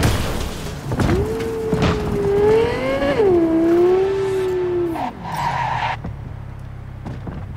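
A car engine roars, rising and falling in pitch as it revs.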